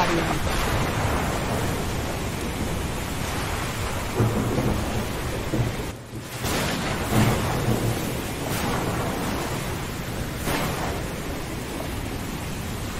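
Thunder rumbles low and long.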